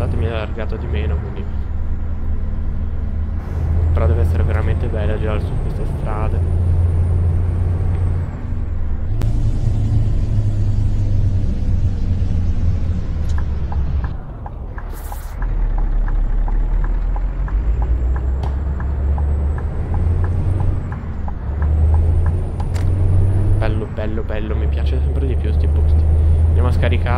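A truck engine rumbles low and steady as the truck drives along.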